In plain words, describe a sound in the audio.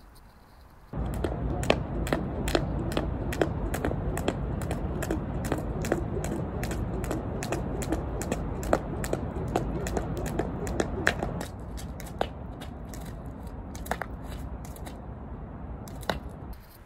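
A jump rope slaps the ground in a quick, steady rhythm outdoors.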